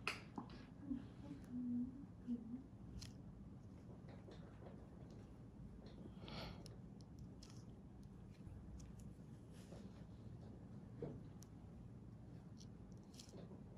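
A needle scrapes softly against skin.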